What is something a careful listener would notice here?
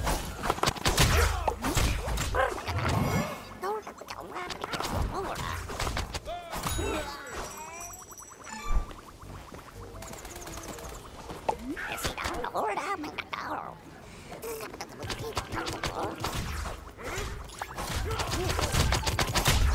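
Punches and blasts thud and crackle in a fight.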